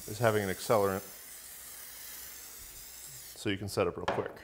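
An aerosol can hisses as it sprays.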